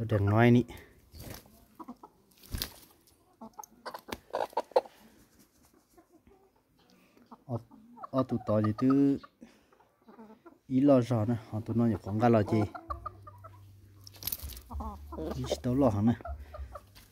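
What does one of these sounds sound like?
A rooster clucks close by.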